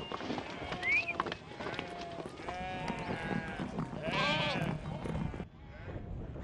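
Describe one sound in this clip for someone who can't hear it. Many hooves patter on grass.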